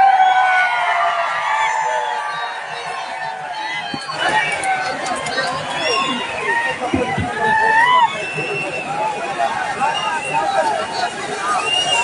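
An elderly man speaks into a microphone over a loudspeaker.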